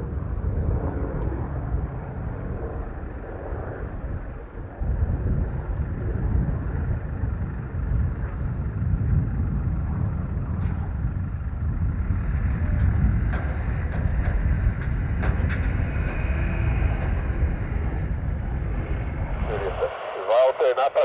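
A helicopter engine idles with a low, steady rumble nearby, outdoors.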